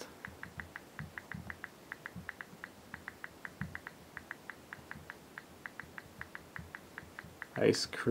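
A phone keyboard clicks quickly with each tap of the keys.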